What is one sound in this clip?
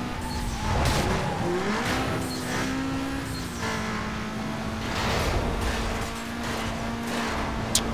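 Tyres hiss on the road.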